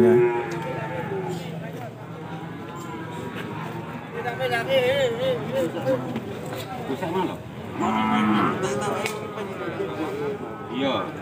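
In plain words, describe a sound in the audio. A crowd of men and women chatters outdoors nearby.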